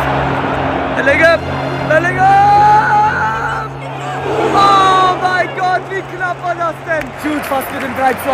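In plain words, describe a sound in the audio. A young man shouts in dismay close by.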